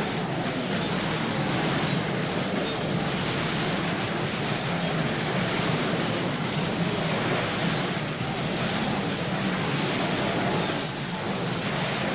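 Magic blasts crackle and boom rapidly in a fast battle.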